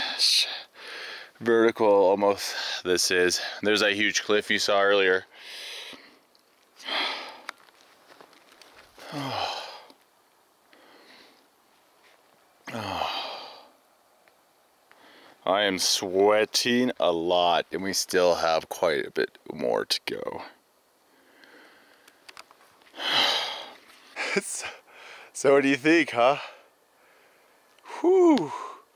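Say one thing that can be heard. A man talks with animation, close by, outdoors.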